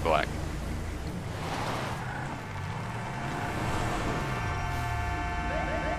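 A car engine hums as a car drives away.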